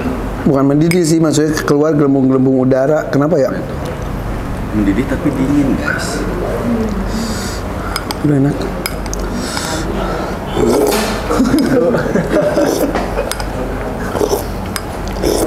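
A spoon scrapes against a glass.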